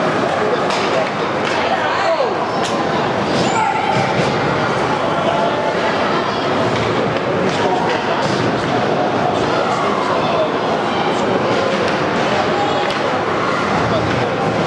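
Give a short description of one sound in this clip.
A crowd of spectators murmurs and cheers in a large echoing arena.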